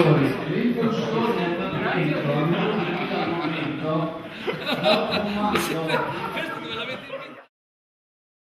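Several men talk and laugh loudly together close by.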